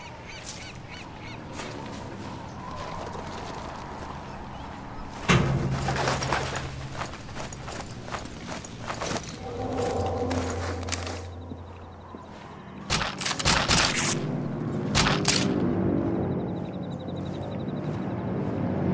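Footsteps scuff on stone and wooden boards.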